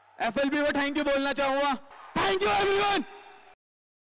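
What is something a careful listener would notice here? A young man speaks loudly and energetically into a microphone, heard through loudspeakers.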